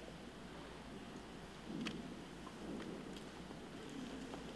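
Footsteps shuffle softly on a stone floor in a large echoing hall.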